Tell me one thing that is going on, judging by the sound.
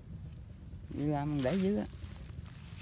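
A man speaks briefly nearby.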